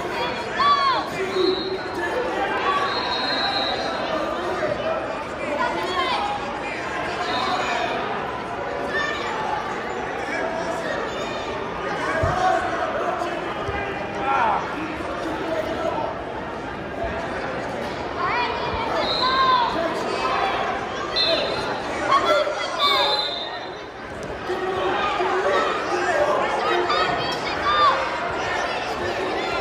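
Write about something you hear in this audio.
Sneakers squeak sharply on a mat.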